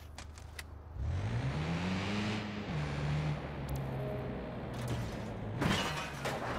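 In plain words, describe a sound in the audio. A car engine revs and then idles.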